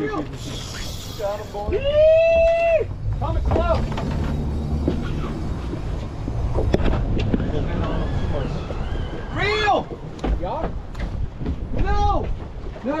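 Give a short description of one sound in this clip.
Wind buffets a microphone outdoors on open water.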